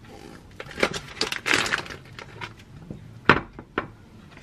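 A ceramic plate clinks on a counter.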